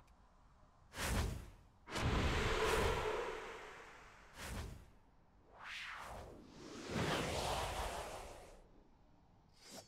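Magic bursts whoosh and rumble.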